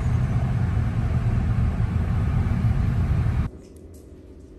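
A car's engine and tyres rumble steadily on a highway, heard from inside.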